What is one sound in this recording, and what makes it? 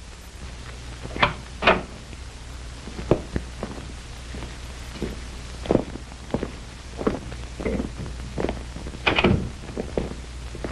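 Footsteps tread on a hard floor in a room.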